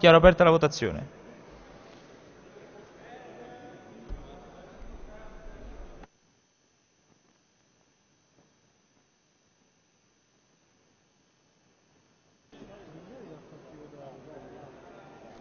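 Many voices murmur quietly in a large hall.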